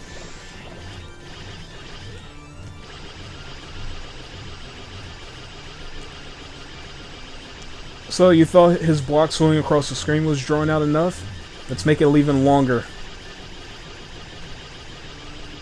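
Video game music plays steadily with a soft, pulsing beat.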